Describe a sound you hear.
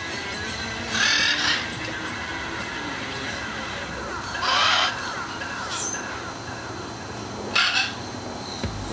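A man makes loud smacking and hissing sounds with his lips.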